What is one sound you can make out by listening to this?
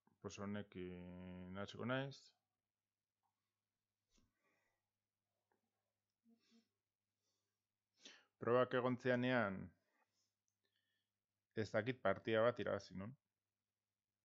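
A man speaks with animation close to a microphone, in short bursts.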